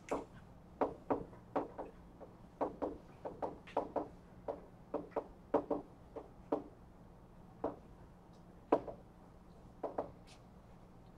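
Chalk taps and scratches on a blackboard in short bursts.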